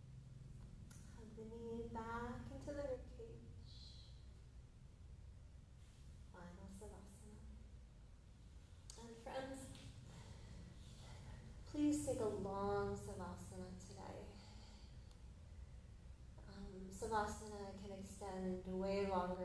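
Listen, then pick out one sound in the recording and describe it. A woman speaks calmly and slowly through a microphone, with pauses.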